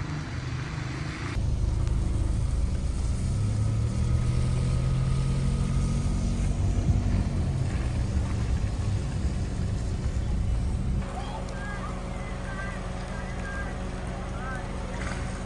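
Steady rain pours down outdoors.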